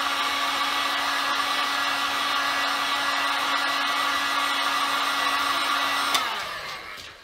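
A spinning sanding disc whines steadily as it grinds a metal strip.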